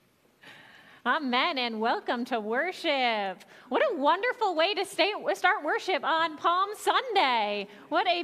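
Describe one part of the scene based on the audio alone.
A woman speaks clearly through a microphone in a large room.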